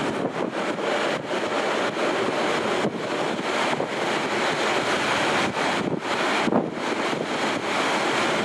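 Wind rushes loudly past an open train window.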